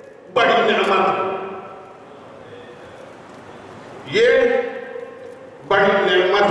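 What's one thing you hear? An elderly man speaks into a microphone in a slow, drawn-out, chanting way, with echo.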